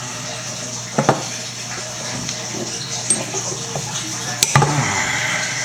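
Metal parts clink and click together.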